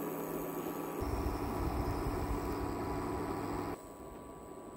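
Oil pours and glugs into an empty pot.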